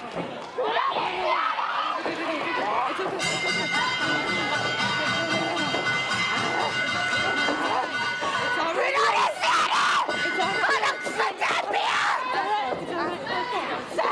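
A young woman shouts angrily.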